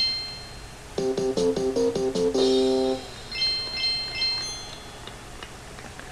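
A short cheerful jingle of chiming tones plays.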